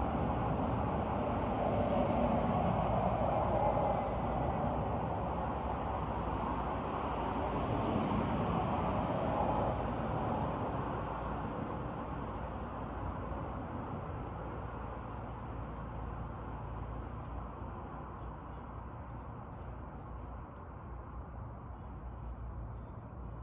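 Wind blows steadily outdoors, rustling through tall trees.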